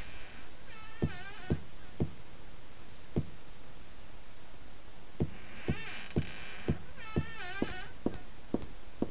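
Footsteps tread across a floor at a walking pace.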